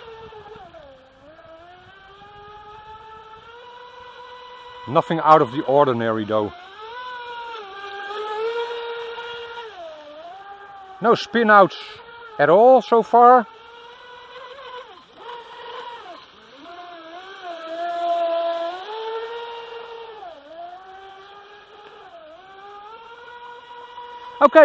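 A small motor whines high, rising and falling in pitch as a model boat races.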